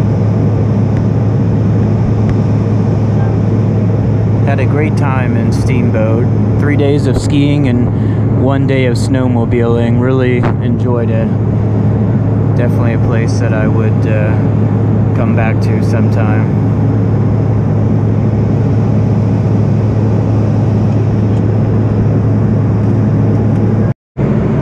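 A jet engine drones steadily inside an airplane cabin.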